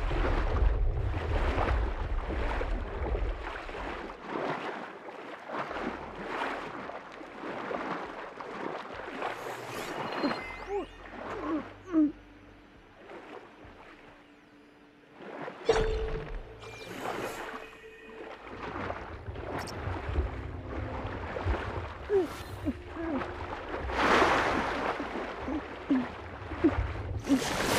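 Water gurgles and bubbles as a figure swims underwater.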